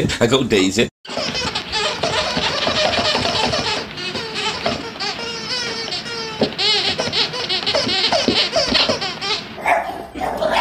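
A dog paws and scrapes a plastic disc on the floor.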